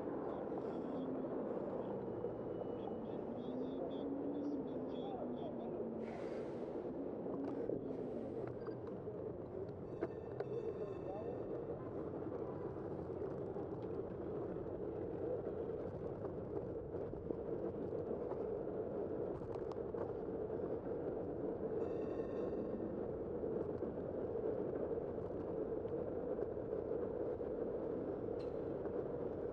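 Wind rushes steadily past while riding down a city street.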